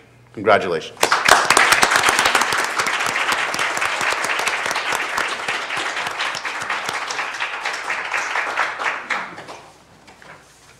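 A crowd claps and applauds in a large room.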